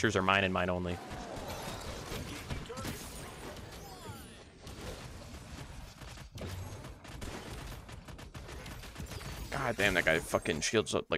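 Weapons fire in quick bursts, with crackling blasts.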